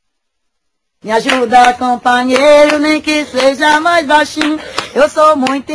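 A woman sings loudly outdoors.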